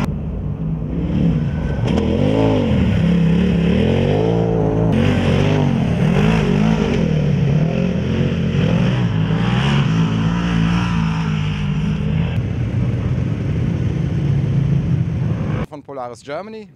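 Off-road buggy engines roar and rev loudly.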